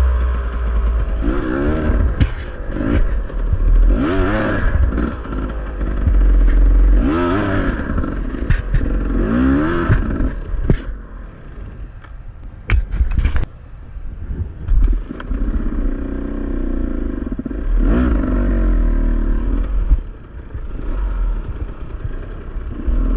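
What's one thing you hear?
A dirt bike engine revs up and down in bursts, close by.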